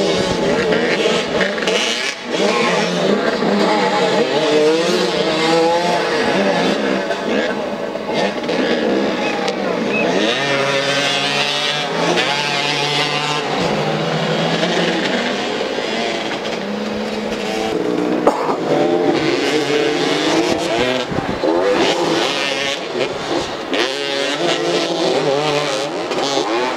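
Motorcycle engines rev and roar nearby, rising and falling in pitch.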